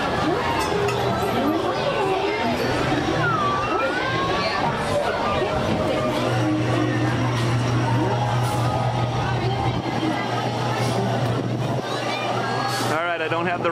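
A crowd of people chatter and call out nearby.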